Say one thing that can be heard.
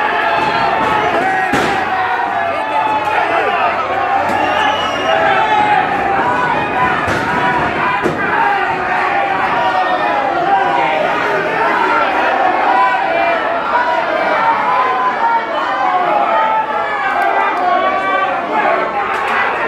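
A large crowd shouts and cheers throughout in a big echoing hall.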